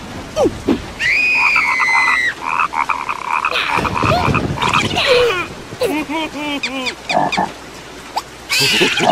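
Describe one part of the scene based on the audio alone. A cartoon creature shouts angrily in a high voice.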